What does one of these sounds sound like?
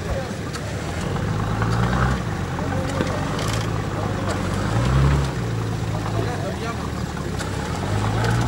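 Tyres spin and churn through thick mud.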